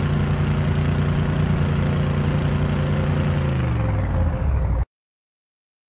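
A vehicle engine hums steadily, then drops in pitch and cuts out.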